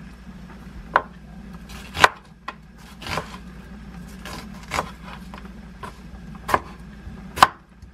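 A knife chops on a wooden cutting board with sharp knocks.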